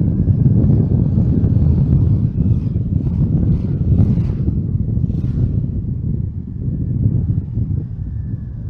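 Wind rumbles steadily and loudly.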